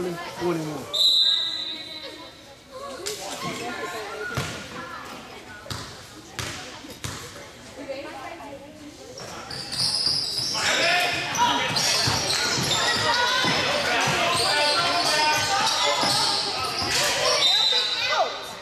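A referee's whistle blows sharply in an echoing gym.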